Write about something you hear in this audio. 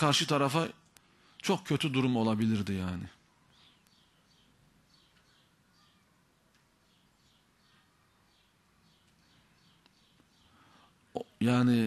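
A man speaks slowly and deliberately into a microphone, with long pauses.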